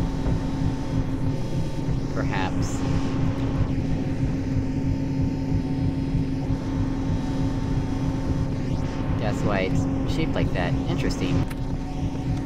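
A fan hums with a steady low drone.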